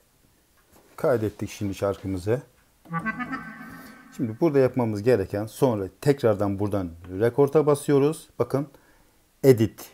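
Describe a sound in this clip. An electronic keyboard plays a melody in a reedy, clarinet-like tone.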